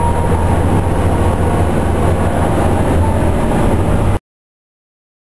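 A vehicle engine rumbles low and steady from inside.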